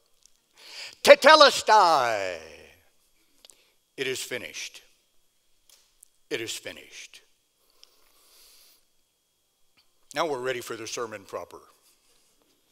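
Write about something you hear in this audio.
An elderly man speaks with animation through a microphone in short bursts.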